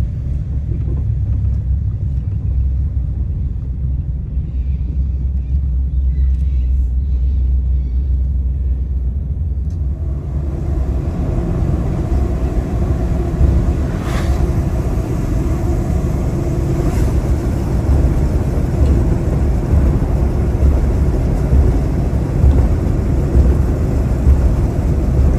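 A car engine rumbles low and steady, heard from inside the car.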